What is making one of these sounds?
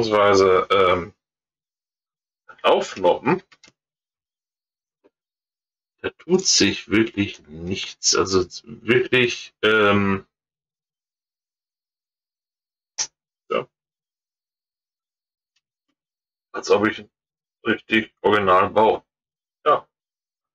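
A middle-aged man talks calmly and close to a microphone, in short bursts.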